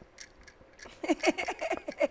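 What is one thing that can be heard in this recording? A woman laughs heartily.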